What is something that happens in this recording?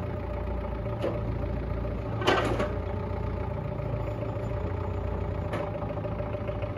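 Metal rails clank and scrape as a forklift drags them.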